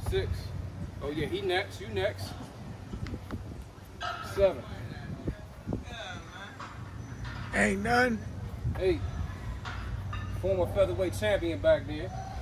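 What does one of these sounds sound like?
A young man talks nearby in a casual, animated way.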